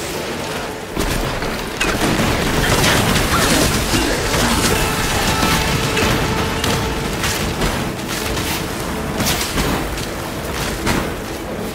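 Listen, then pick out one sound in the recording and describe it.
Magic spells crackle and burst in quick bursts.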